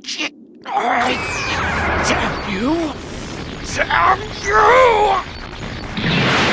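A deep monster voice groans and curses angrily.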